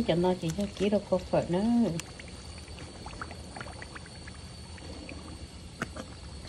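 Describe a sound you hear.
Hot oil sizzles and crackles in a pan.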